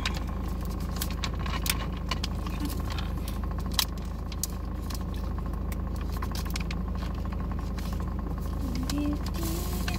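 A plastic bottle crinkles in a man's hand.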